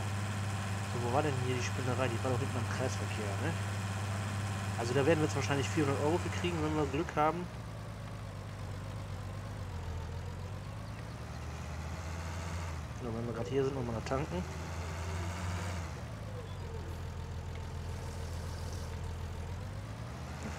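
A tractor engine rumbles steadily and slows down at the end.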